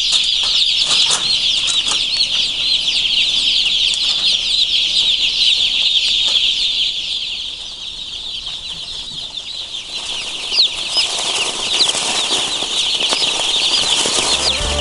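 Many chicks peep and cheep loudly all around.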